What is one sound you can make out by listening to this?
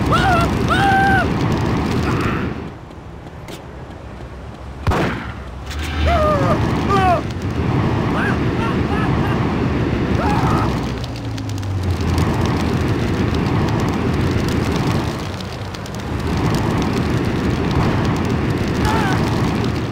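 A flamethrower roars in long bursts.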